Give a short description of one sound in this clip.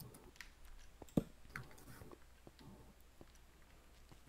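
Lava bubbles and pops nearby.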